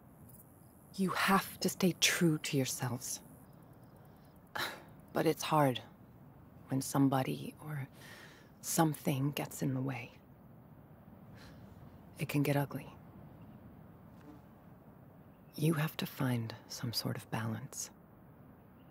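A woman speaks calmly and earnestly, close by.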